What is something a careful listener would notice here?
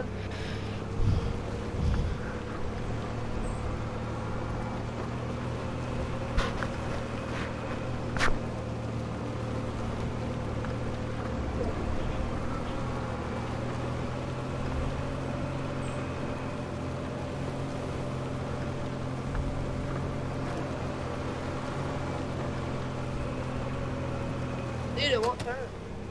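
A small cart engine hums steadily.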